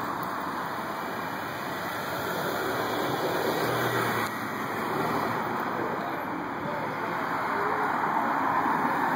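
A car engine hums as a car drives slowly past nearby.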